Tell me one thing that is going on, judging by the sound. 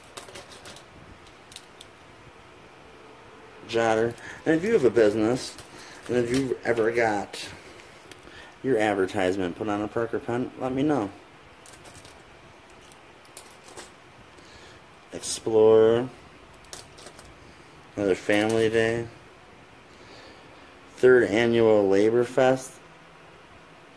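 Plastic pens rattle softly as a hand picks them up and sets them down.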